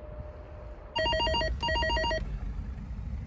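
An intercom beeps in short repeated tones.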